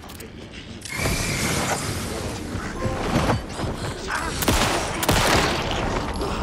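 A handgun fires several loud shots.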